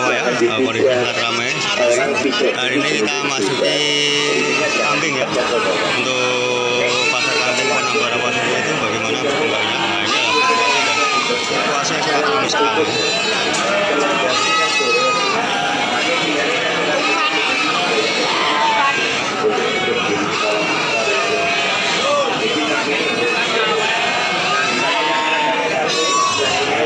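Many sheep bleat loudly and often close by.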